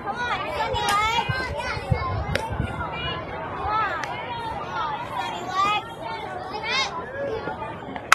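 Young girls cheer and shout outdoors.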